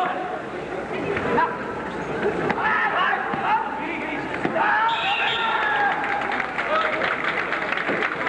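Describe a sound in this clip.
Young men shout sharply as they clash.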